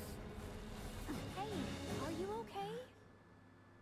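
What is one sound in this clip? A young woman asks a question gently.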